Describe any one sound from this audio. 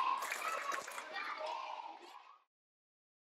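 Children chatter and shout in a noisy crowd.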